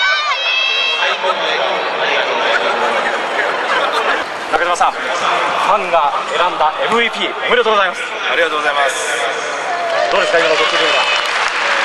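A man speaks into a microphone, heard over loudspeakers.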